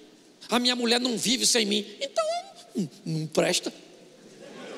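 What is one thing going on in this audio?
An older man speaks loudly and with animation through a microphone.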